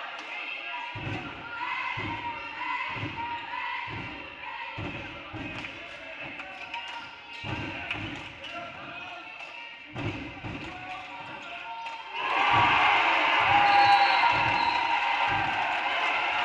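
A basketball bounces on a hardwood floor in a large echoing gym.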